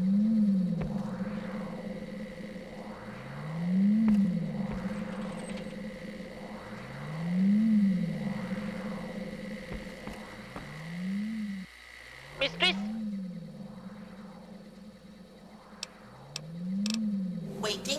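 A machine hums with a steady drone that swells and falls in slow, regular pulses.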